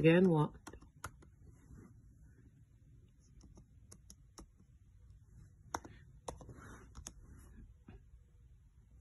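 Fingers tap lightly on keys.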